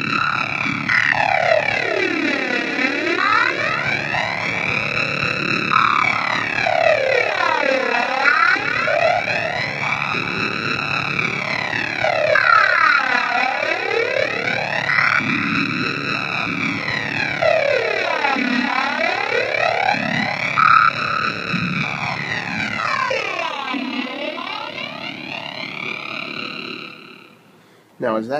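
A synthesizer plays a buzzing drone that sweeps up and down in slow, repeating waves.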